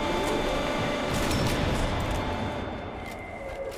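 A rifle shot booms with an echo.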